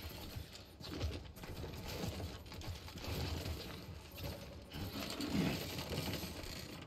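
Heavy footsteps thud on a metal floor.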